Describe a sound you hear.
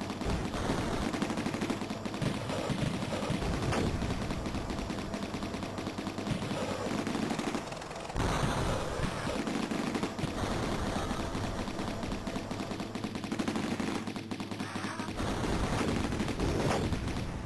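Arcade game music plays steadily with a pounding beat.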